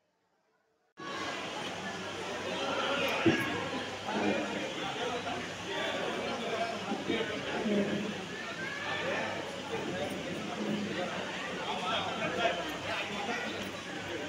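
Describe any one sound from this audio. A crowd of men and women chatter in a busy hall.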